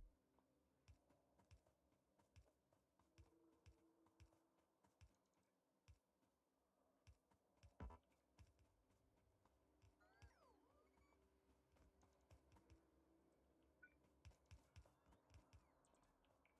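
Soft footsteps patter steadily on dirt.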